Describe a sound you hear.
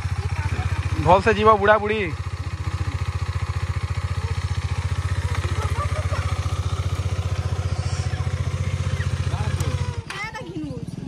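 A motorcycle engine idles with a steady low rumble.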